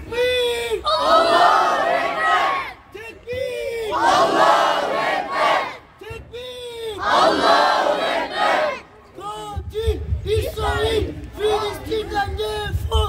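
A crowd of men chants slogans loudly in unison outdoors.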